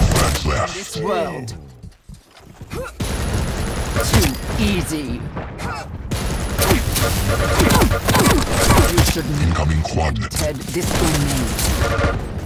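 Guns fire in quick bursts of sharp shots.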